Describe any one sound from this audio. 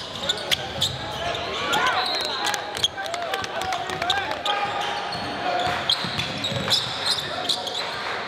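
A crowd murmurs in an echoing gym.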